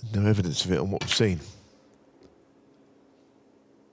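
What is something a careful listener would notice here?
A cue tip knocks a snooker ball with a sharp click.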